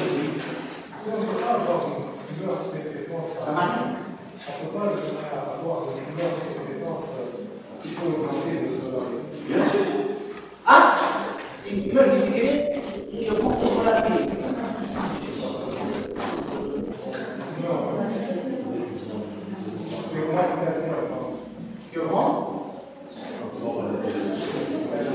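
A middle-aged man lectures with animation in a room with a slight echo.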